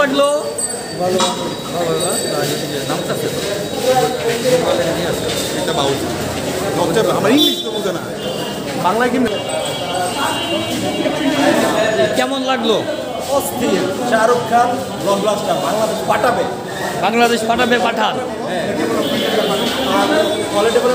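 A crowd of people chatters and moves about in an echoing hall.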